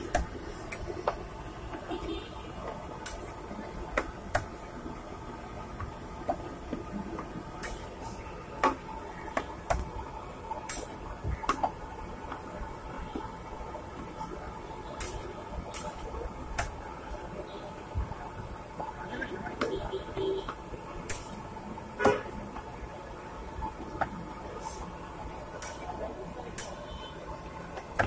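Flatbreads sizzle softly on a hot griddle.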